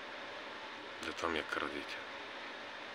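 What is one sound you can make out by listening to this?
A man speaks briefly and calmly, close to a phone's microphone.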